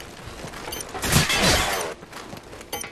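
Gunshots bang loudly in short bursts.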